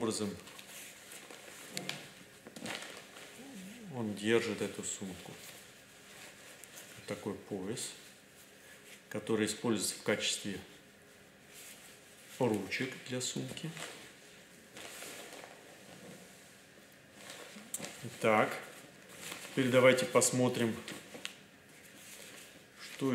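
Fabric and straps rustle softly as a bag is handled.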